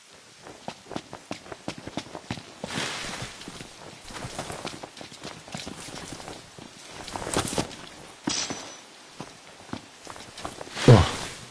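Footsteps rustle quickly through undergrowth.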